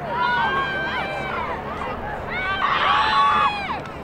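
Lacrosse sticks clack together.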